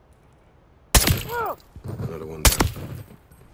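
A rifle fires two loud, sharp shots.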